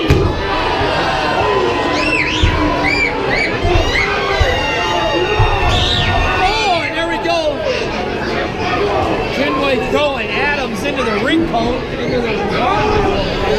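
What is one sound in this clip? A crowd of children and adults cheers and shouts loudly in an echoing hall.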